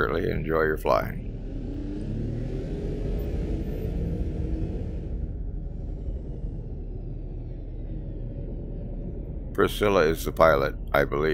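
A spacecraft engine hums with a low, steady rumble.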